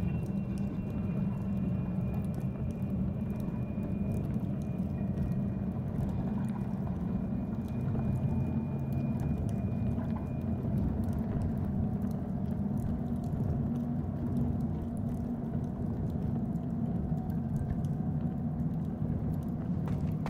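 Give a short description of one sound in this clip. Fires crackle and hiss softly.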